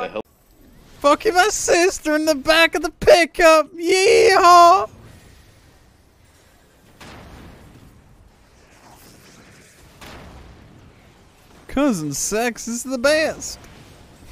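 A man talks with animation into a close microphone, at times loudly.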